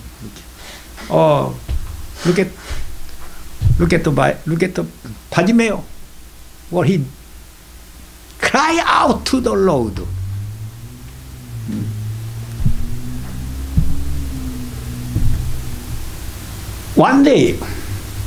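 An elderly man speaks with animation into a microphone, with pauses.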